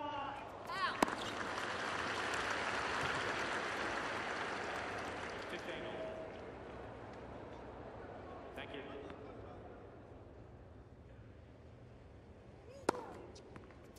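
A tennis racket strikes a ball with a sharp pop.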